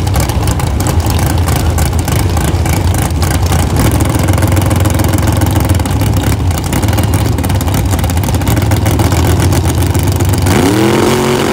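A drag racing engine idles with a loud, rough rumble close by.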